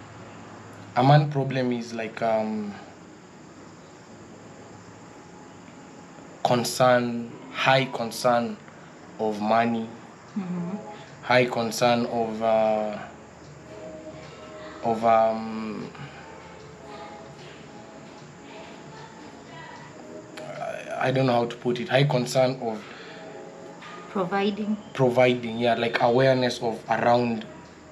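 A man speaks calmly and close by, in bursts with pauses.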